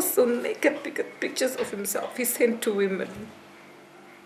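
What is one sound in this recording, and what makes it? A young woman speaks tearfully close by, her voice breaking.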